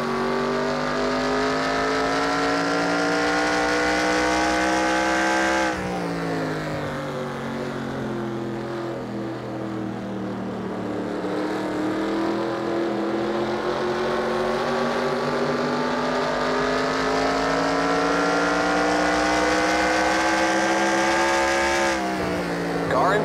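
A race car engine roars at high revs, dropping in pitch as it slows for a turn and then rising again as it speeds up.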